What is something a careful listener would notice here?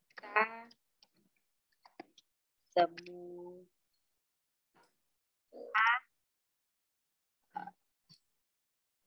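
A young woman speaks slowly through a computer microphone, in short bursts with pauses.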